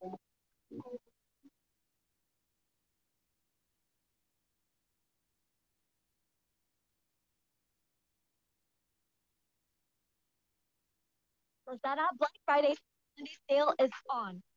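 A young woman speaks close to a microphone, heard through an online call.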